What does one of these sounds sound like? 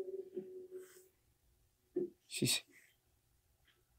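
A hand strokes and pats a dog's fur.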